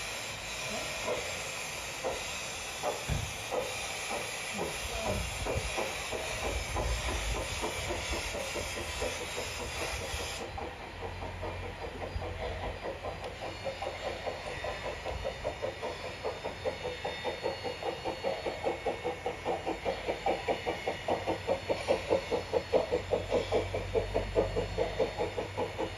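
Train wheels rumble softly along the rails.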